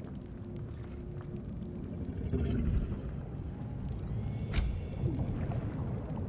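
Game menu selections click softly.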